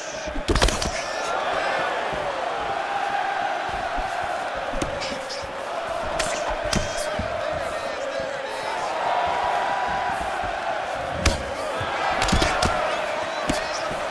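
A crowd roars steadily in a large arena.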